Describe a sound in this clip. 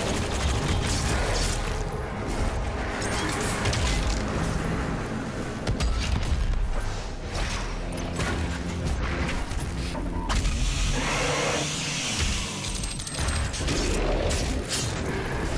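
Monsters roar and snarl up close.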